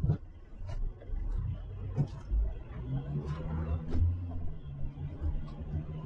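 Another car passes close by in the opposite direction.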